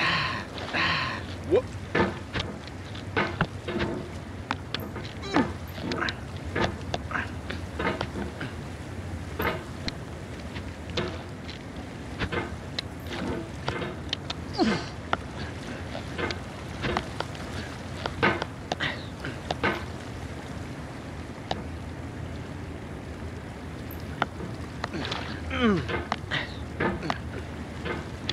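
A hammer knocks and scrapes against rock and wood again and again.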